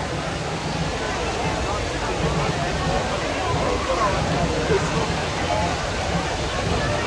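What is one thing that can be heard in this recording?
A fountain splashes and gushes steadily.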